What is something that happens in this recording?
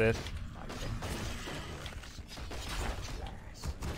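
Game battle sounds clash and clang.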